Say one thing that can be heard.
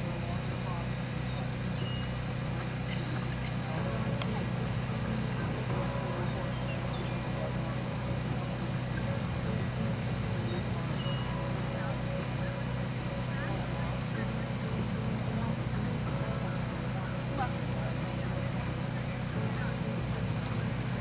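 A horse's hooves thud softly on grass at a trot.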